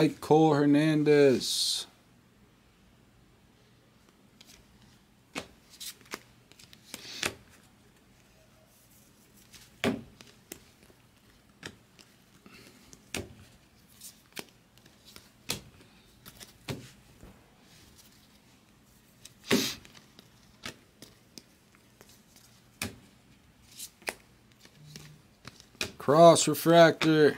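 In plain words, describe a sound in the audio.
Trading cards flick and snap as they are shuffled by hand.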